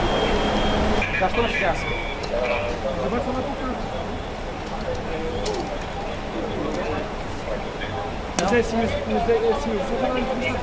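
A crowd of men murmurs nearby.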